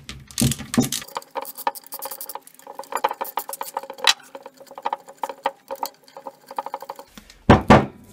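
A ratchet wrench clicks rapidly as bolts are turned.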